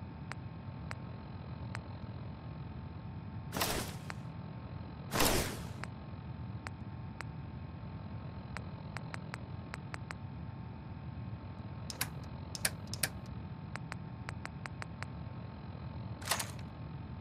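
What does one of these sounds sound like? Short electronic clicks tick again and again.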